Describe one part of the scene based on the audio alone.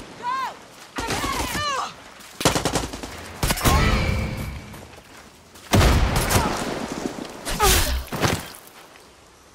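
Gunshots crack loudly in bursts.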